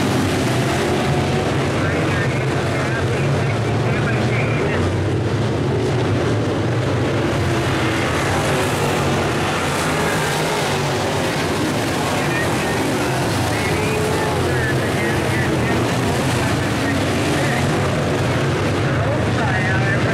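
A pack of V8 dirt-track modified race cars roars around the track.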